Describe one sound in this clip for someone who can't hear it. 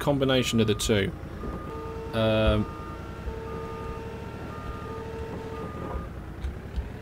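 A forklift warning beeper beeps at an even pace.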